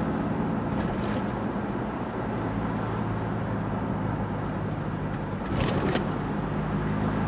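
A car engine hums steadily from inside the car as it drives along.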